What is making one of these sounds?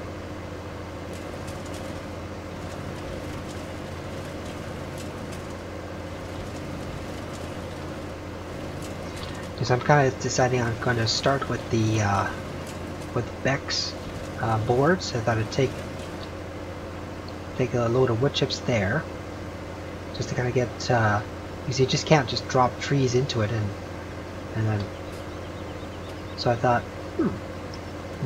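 A diesel engine hums steadily.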